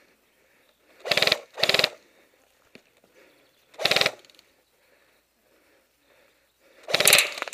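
A paintball gun fires short rapid bursts of shots nearby.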